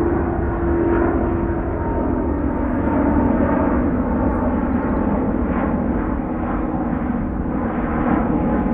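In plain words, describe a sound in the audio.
A jet airliner roars steadily overhead.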